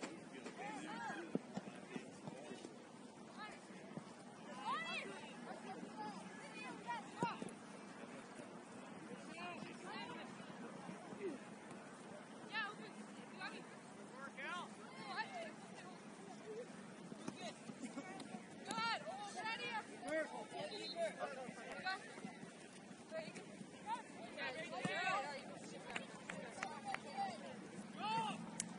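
Young players shout and call out to each other across an open field, heard from a distance.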